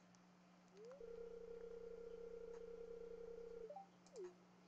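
A video game's dialogue text scrolls out with a steady electronic tone.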